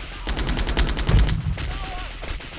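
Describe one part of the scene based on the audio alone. A vehicle explodes with a deep boom.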